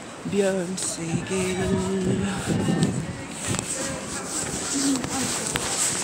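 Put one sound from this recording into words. A middle-aged woman talks close to the microphone.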